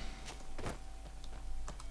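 Footsteps crunch slowly on a gravel path.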